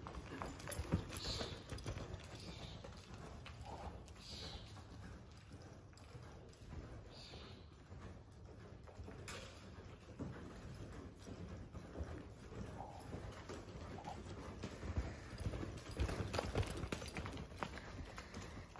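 A horse's hooves thud softly on loose dirt, loud close by and fading as it lopes away.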